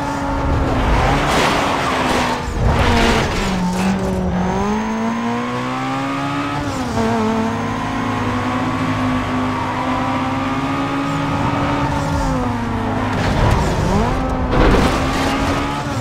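Tyres screech on asphalt through a turn.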